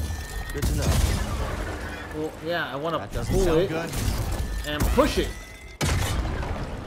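Blaster shots fire and crackle.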